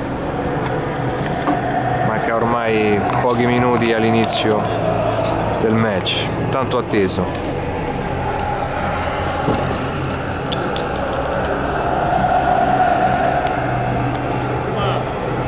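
A crowd murmurs steadily outdoors.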